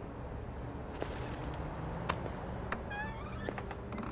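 A door latch clicks and a door creaks open.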